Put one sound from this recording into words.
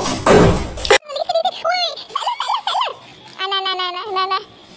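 A cat meows loudly and repeatedly.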